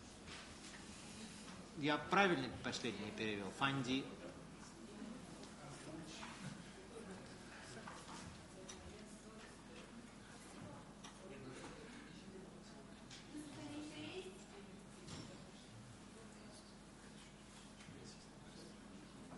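People talk quietly in the background of a room.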